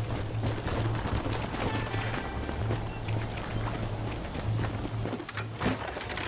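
A wagon rattles along.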